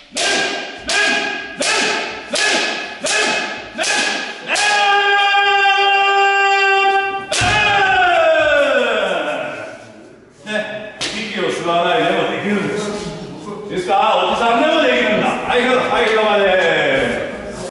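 Young people shout loud rhythmic cries in an echoing hall.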